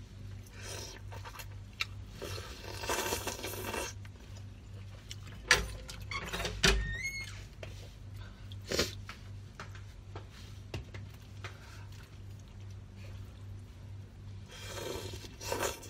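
A young woman chews food with wet, smacking sounds, close up.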